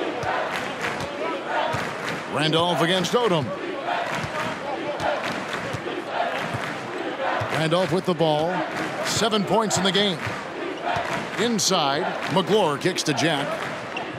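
A large indoor crowd murmurs and cheers.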